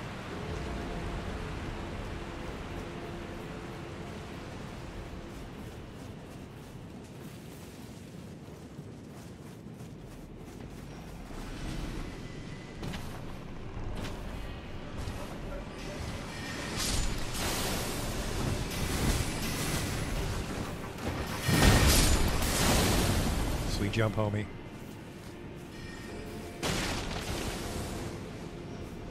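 Footsteps run over dirt and brush.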